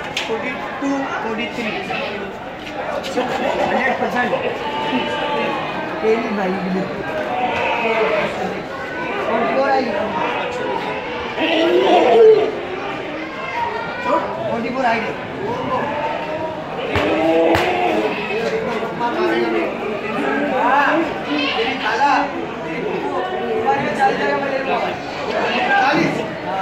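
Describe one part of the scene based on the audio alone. Men talk nearby with animation.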